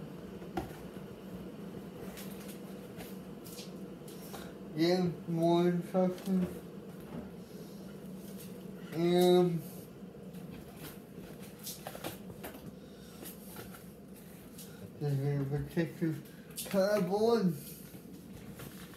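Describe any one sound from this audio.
Cardboard packaging rustles and scrapes under hands.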